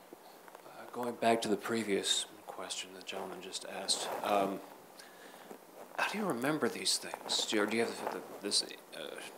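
A man talks calmly through a microphone.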